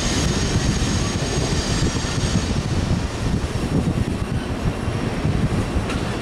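A freight train of empty coal hopper cars rumbles and clatters over the rails.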